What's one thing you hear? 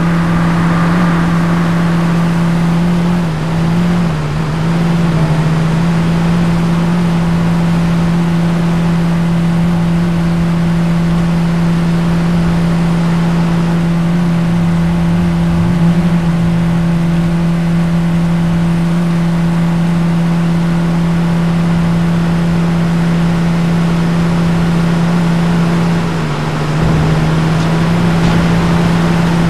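A car engine hums steadily as a car drives fast along a highway.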